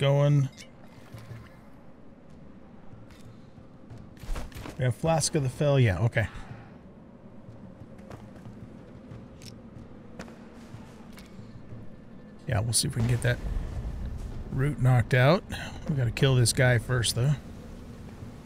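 An elderly man talks with animation into a close microphone.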